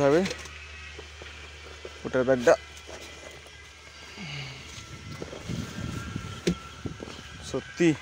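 A bag rustles as a hand moves it.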